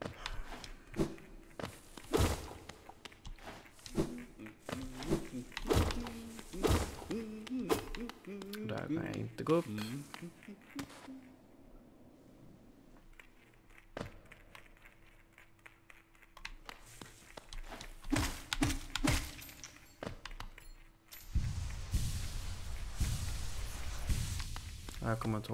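Sharp slashing and thudding game sounds ring out.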